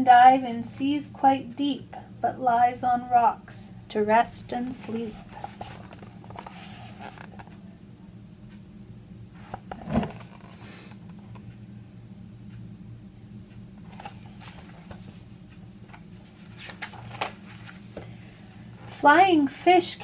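A woman reads aloud close by, with animation.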